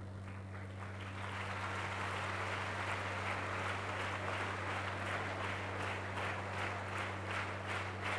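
A large audience claps steadily in an echoing hall.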